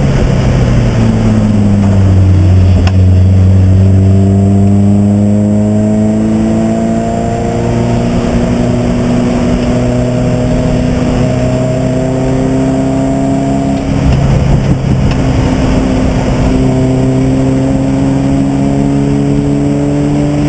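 A race car engine roars loudly up close, rising in pitch as it accelerates and dropping briefly at a gear change.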